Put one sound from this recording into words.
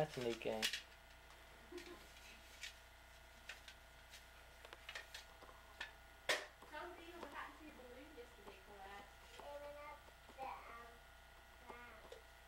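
Small plastic toys click and clatter on the floor.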